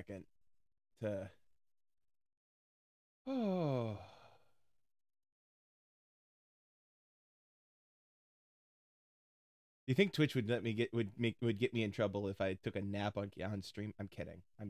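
A young man speaks through a close microphone, pausing between short bursts and then talking quickly with animation.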